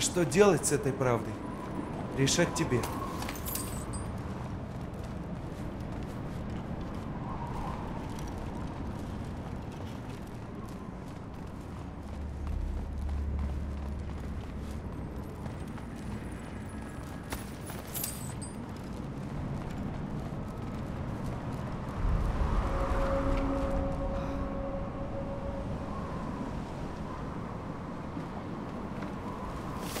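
Footsteps crunch steadily over snow and stone.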